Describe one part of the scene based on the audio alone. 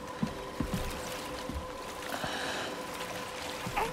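Footsteps thud on a wooden boat.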